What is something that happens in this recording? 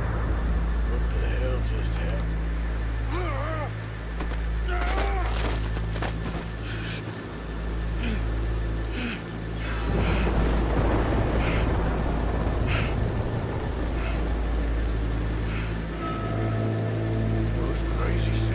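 A man speaks in a rough, low voice, close by.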